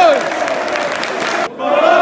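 Fans nearby clap their hands.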